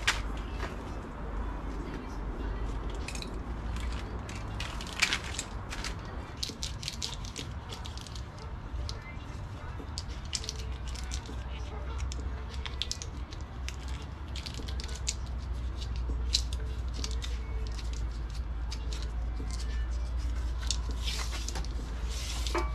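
Wires rustle and click as they are handled close by.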